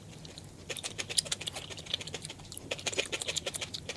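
A metal fork scrapes against a plate.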